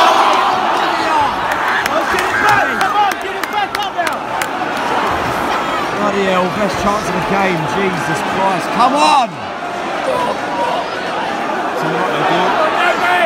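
Football players shout to each other across a large open pitch.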